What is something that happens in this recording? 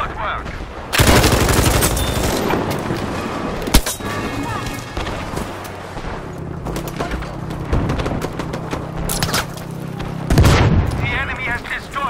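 A machine gun fires loud bursts at close range.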